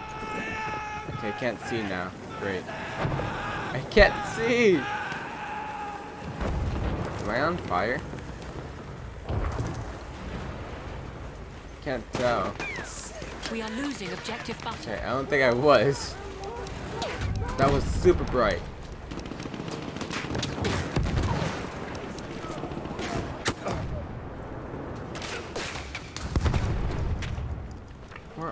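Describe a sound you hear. A pistol fires in sharp cracks.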